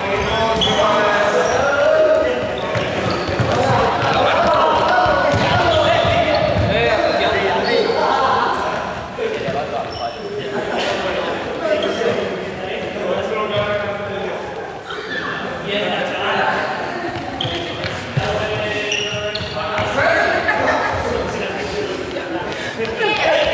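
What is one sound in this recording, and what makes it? Sneakers squeak on a hard gym floor.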